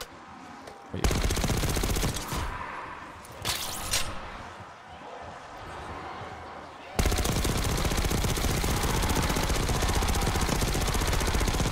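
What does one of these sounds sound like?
A machine gun fires rapid bursts up close.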